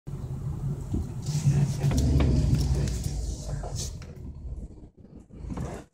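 A car engine hums low while driving.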